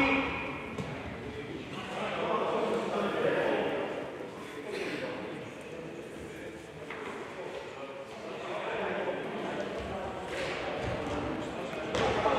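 Players' shoes squeak on an indoor court.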